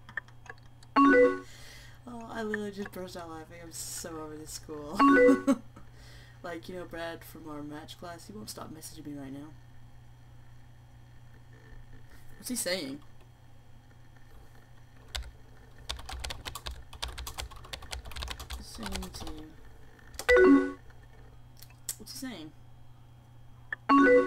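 An instant message alert chimes.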